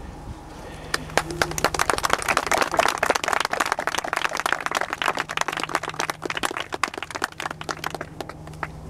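A crowd claps and applauds.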